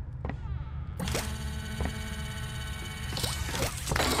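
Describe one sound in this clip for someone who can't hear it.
A hand scanner hums with an electronic buzz.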